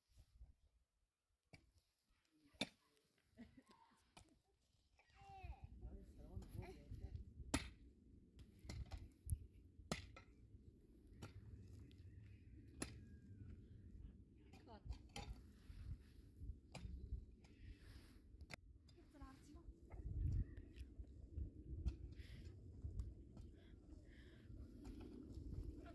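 A pickaxe chops into dry, stony earth.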